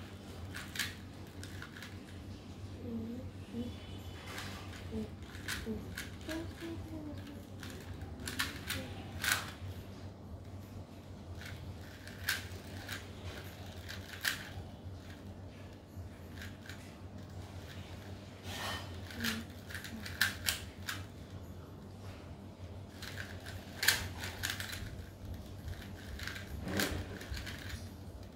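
A plastic puzzle cube clicks as its layers are turned quickly.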